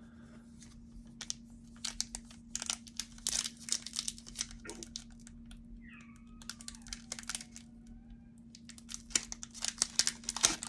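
A foil card wrapper crinkles and rustles in a hand.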